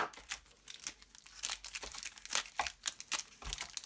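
Packaged bars rustle as they are handled.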